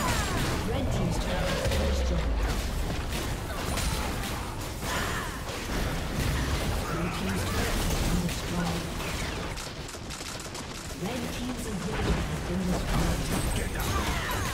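Towers crumble with heavy explosive crashes.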